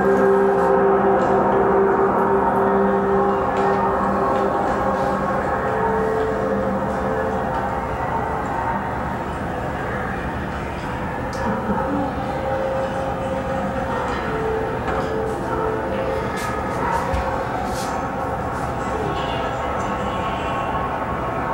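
Music from a film soundtrack plays through loudspeakers in a room.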